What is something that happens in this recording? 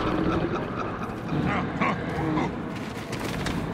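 Footsteps run across hard ground.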